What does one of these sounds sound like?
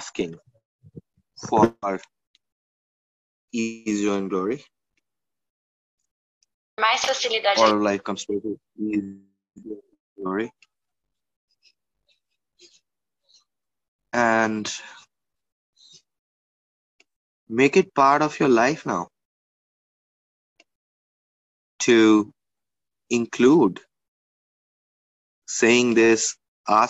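A young man speaks in short phrases with pauses between them.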